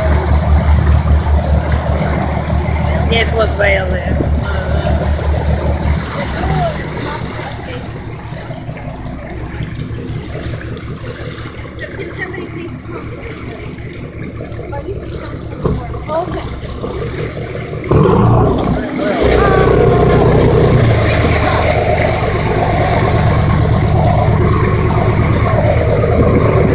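Water splashes and churns in a boat's wake.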